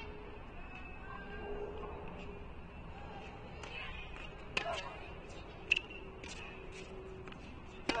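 A racket strikes a tennis ball with sharp pops.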